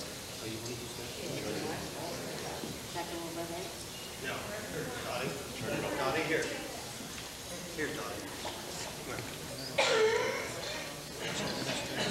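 An elderly woman talks with animation nearby.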